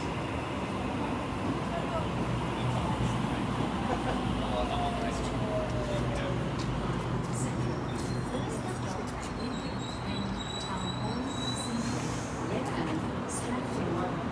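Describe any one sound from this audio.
A train rumbles past and slows to a stop.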